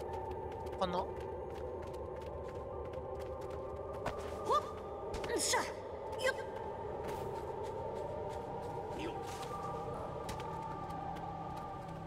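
Quick footsteps patter on a stone floor.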